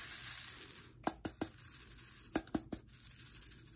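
Small beads rattle and click in a plastic tray.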